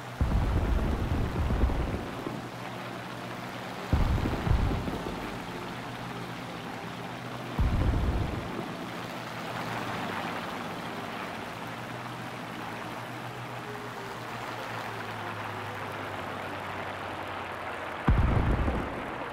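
Machine guns fire in short, loud bursts.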